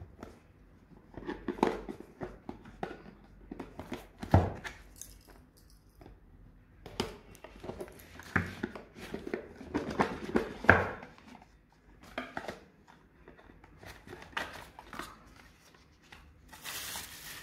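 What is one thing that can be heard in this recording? Cardboard scrapes and taps as a box is handled and opened.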